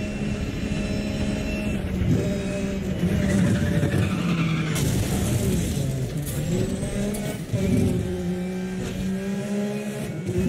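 A sports car engine roars and revs up and down at high speed.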